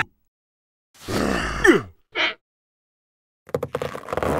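A cartoon creature babbles and squeals in a silly voice.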